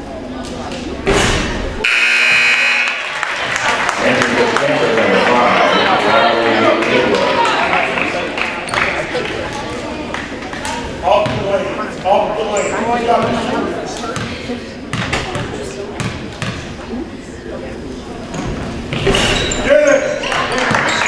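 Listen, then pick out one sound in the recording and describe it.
Basketball shoes squeak on a wooden floor.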